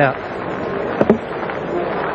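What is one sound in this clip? A cricket ball knocks sharply into the wooden stumps.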